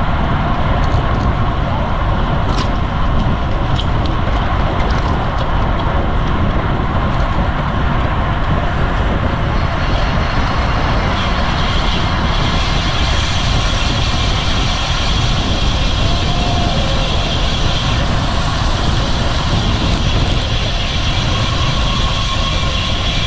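Wind rushes loudly past a moving bicycle.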